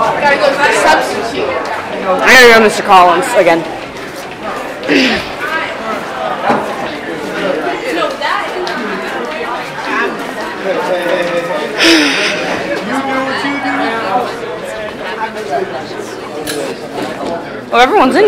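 Many young people chatter and call out nearby in an echoing hallway.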